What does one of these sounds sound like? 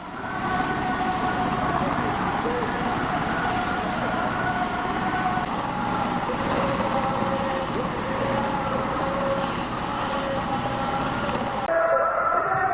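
A helicopter engine whines steadily nearby.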